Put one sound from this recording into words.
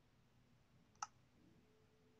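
A game button gives a single short click.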